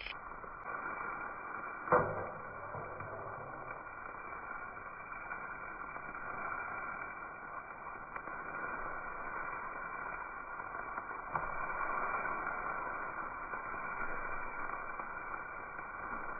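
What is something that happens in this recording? A metal spatula scrapes and clinks against a wok.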